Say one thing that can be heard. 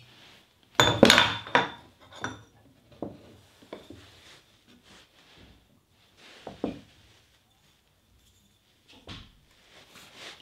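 Glass and objects clink and knock as they are handled.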